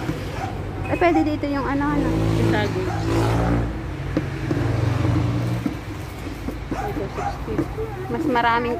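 A young girl speaks close by in a high voice.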